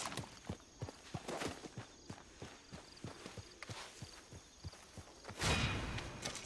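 Footsteps crunch on dry dirt.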